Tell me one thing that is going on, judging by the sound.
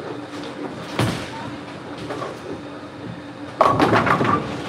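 A bowling ball rumbles down the lane.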